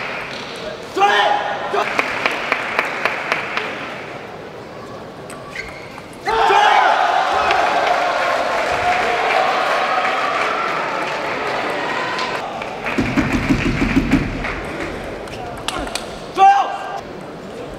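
A young man shouts loudly after winning a point.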